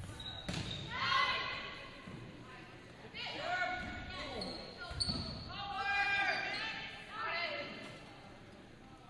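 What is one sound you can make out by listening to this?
Young women players shout calls to each other in an echoing gym.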